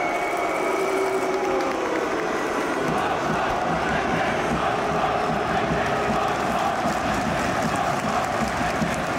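A large crowd in a stadium cheers and chants steadily outdoors.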